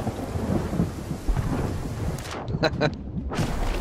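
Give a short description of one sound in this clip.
Stormy waves crash and surge.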